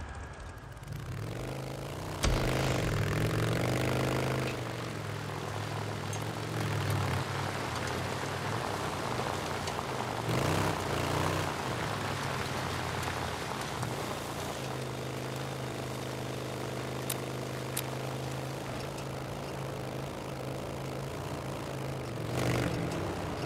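A motorcycle engine rumbles and revs as the bike rides along.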